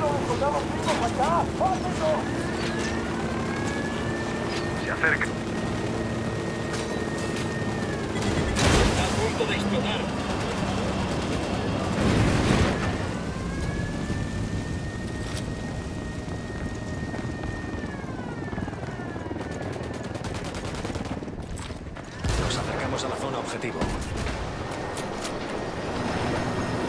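A helicopter's rotor thumps steadily close by.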